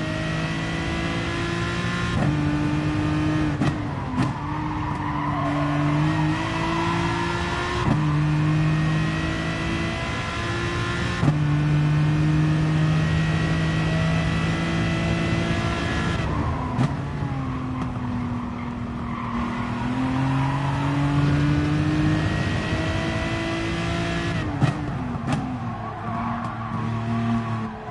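A racing car engine roars, rising in pitch and dropping sharply with each gear change.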